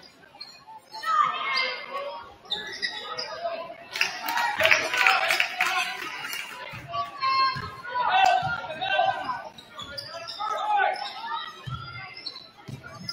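A crowd cheers and shouts from the stands.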